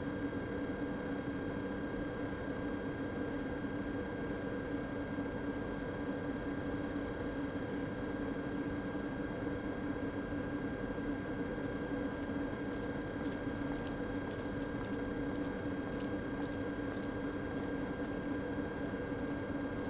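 An electric train hums steadily while it stands idle.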